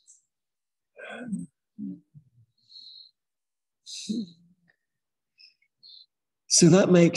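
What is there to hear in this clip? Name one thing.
A man speaks calmly through a microphone, in short phrases.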